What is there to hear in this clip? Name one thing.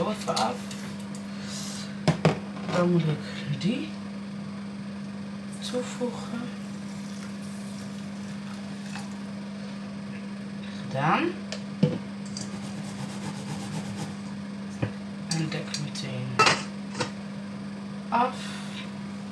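Utensils clink and knock against metal bowls and pans.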